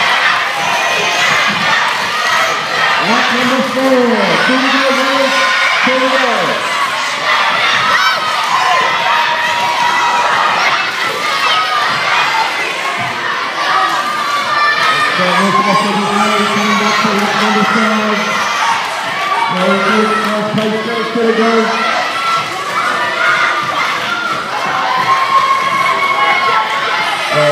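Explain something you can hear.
A crowd of children cheers and shouts in a large echoing hall.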